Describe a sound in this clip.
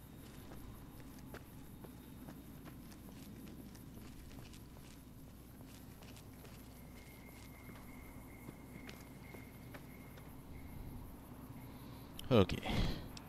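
Footsteps crunch softly on dry gravel.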